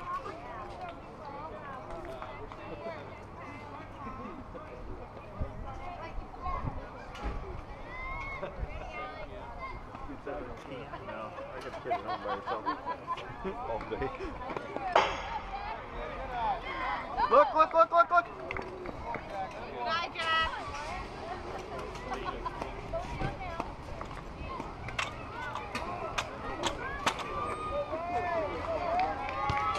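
Children and adults shout and cheer outdoors.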